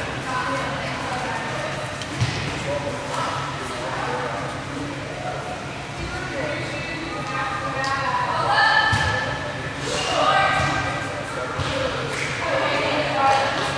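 Young women chatter together in a group.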